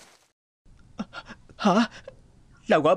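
A young boy makes short vocal sounds close by.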